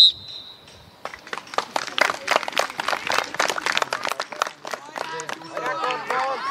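Spectators clap and applaud outdoors.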